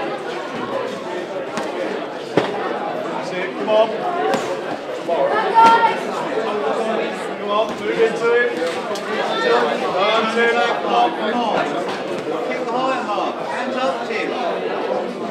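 Boxing gloves thud against headgear and bodies.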